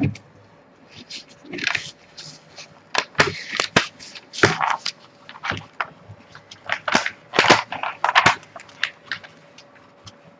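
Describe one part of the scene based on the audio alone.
Paper rustles and crinkles as a backing sheet is peeled back.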